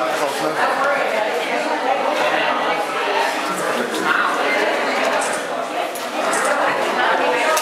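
An elderly woman speaks nearby.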